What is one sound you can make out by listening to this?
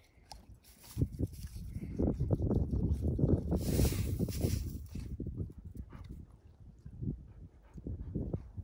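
A dog chews on a stick.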